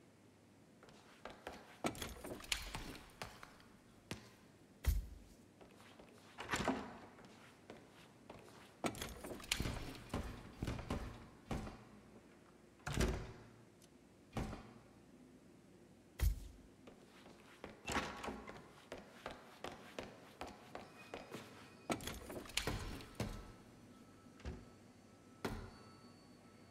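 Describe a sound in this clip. Footsteps tap on a hard wooden floor.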